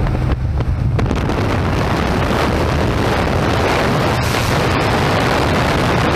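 Wind roars loudly through an open aircraft door.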